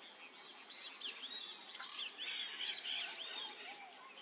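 A parrot gnaws and cracks at tree bark with its bill.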